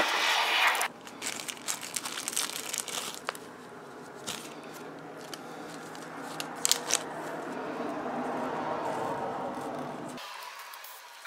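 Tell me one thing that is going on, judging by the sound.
A plastic bag crinkles and rustles between fingers.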